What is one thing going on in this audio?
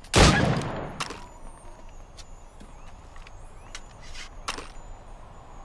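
A musket is reloaded with metallic clicks and scrapes.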